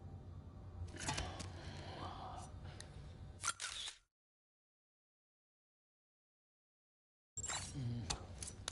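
A man grunts and groans close by.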